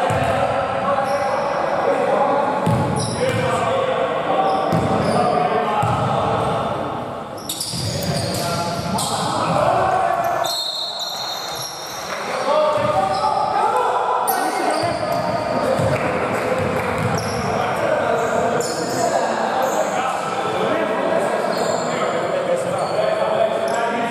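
Basketball shoes squeak on a wooden court in a large echoing hall.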